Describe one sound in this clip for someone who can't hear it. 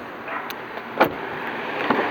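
A car door latch clicks as the door is pulled open.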